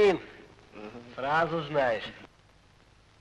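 A man laughs loudly, close by.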